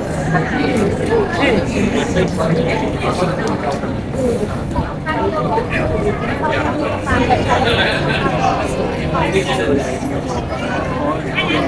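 A crowd of people chatters on all sides outdoors.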